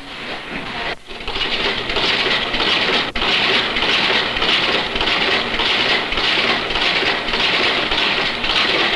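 A duplicating machine runs with a fast, steady clatter.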